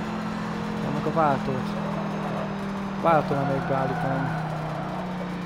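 Tyres squeal briefly through corners.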